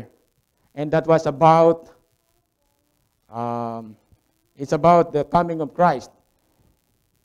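A middle-aged man speaks calmly into a microphone, with pauses between phrases.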